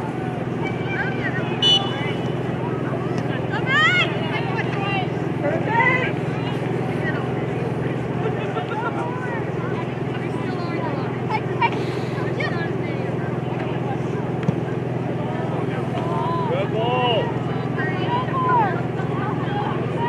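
Players shout to one another across an open field.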